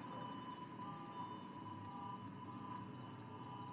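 Water gushes from a pipe and splashes into shallow water.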